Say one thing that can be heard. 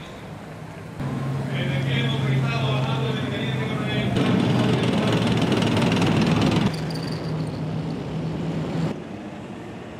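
Heavy military vehicle engines rumble and clatter past.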